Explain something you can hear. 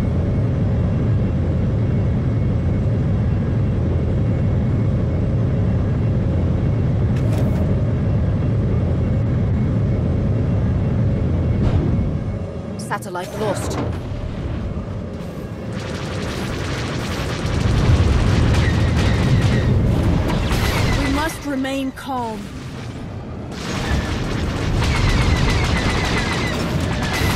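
A spaceship engine roars steadily.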